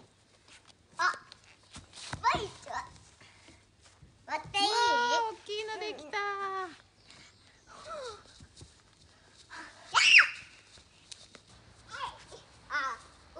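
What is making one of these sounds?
A young girl calls out and squeals excitedly nearby, outdoors.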